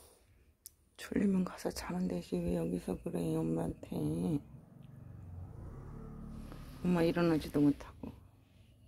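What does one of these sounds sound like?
A dog whines softly.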